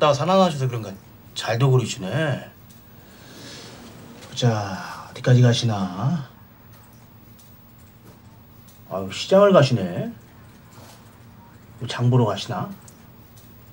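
A middle-aged man speaks in a low, urgent voice close by.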